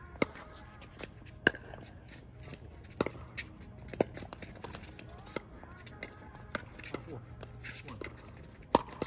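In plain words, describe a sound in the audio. Paddles hit a plastic ball back and forth with sharp pops, outdoors.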